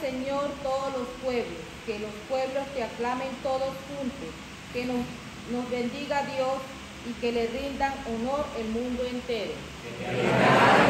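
A young woman reads aloud calmly into a nearby microphone.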